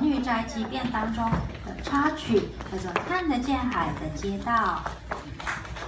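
A young girl speaks calmly through a microphone in a large echoing hall.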